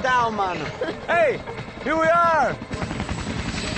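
A young man shouts with animation.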